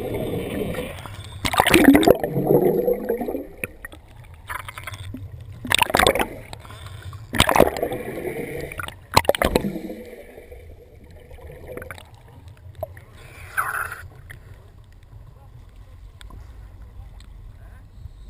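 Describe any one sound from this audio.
Water splashes and sloshes as a diver breaks the surface.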